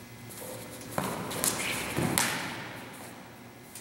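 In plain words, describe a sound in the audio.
Swords clash and clatter in a large echoing hall.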